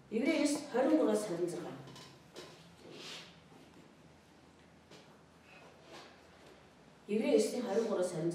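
A woman speaks into a microphone, pausing between phrases.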